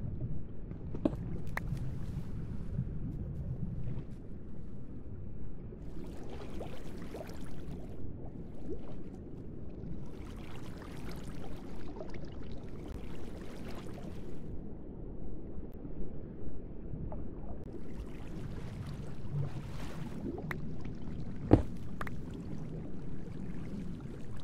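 Water flows and splashes steadily.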